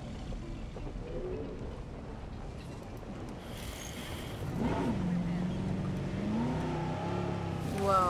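A jeep engine rumbles and drones steadily as the jeep drives off.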